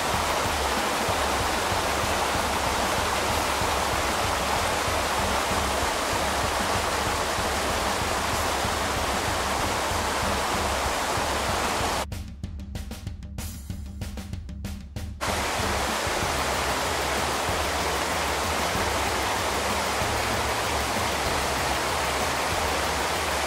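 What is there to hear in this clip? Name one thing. A stream rushes and splashes steadily over rocks.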